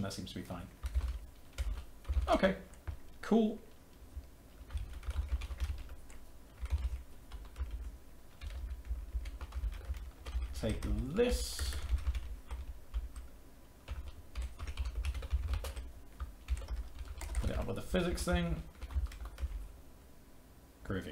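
Computer keys clatter quickly under typing fingers.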